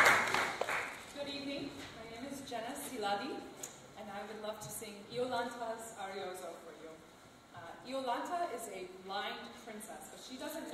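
A young woman sings nearby.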